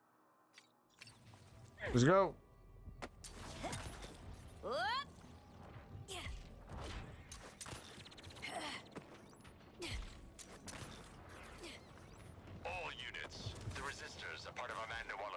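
Game sound effects whoosh and thud as a character moves.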